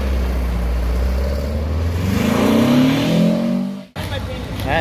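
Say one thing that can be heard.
A car engine revs up and then drops back.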